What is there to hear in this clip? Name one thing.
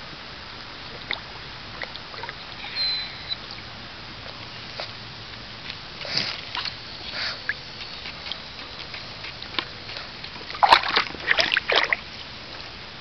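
A small dog splashes and paddles in shallow water.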